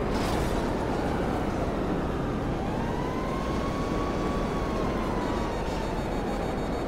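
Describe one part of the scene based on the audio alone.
A jet engine whines with a rising and falling pitch.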